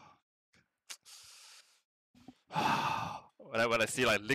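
A young man sighs heavily.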